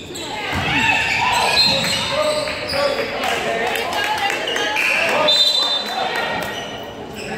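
Young men shout to each other across the echoing gym.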